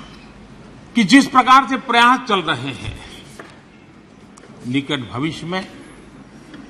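An elderly man speaks forcefully into a microphone.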